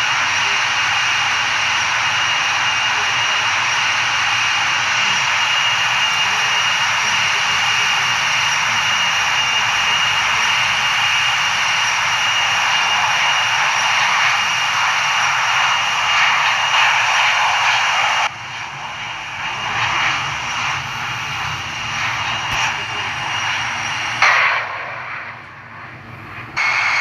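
Jet engines roar steadily as an airliner flies.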